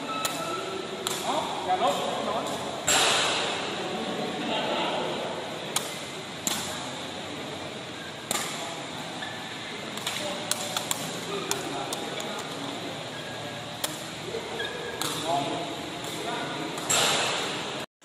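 A racket strikes a ball with sharp smacks.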